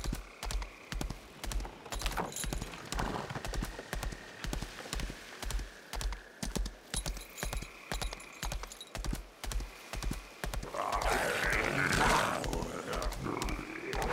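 A horse's hooves pound steadily at a gallop.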